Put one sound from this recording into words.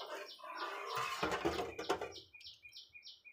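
A metal ladle scrapes and clinks against a pot.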